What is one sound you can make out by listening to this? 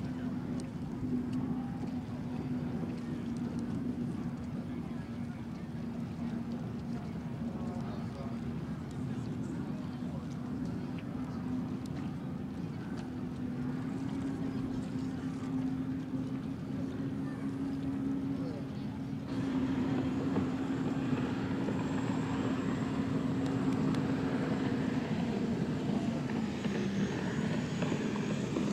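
Water spray hisses behind a speeding boat.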